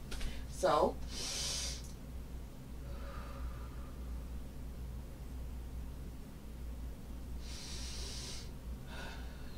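A woman breathes deeply nearby.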